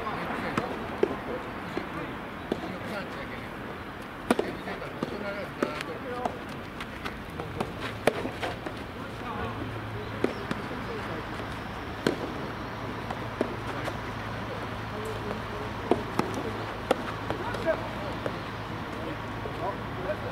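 Tennis balls are struck with rackets in a rally, with sharp pops.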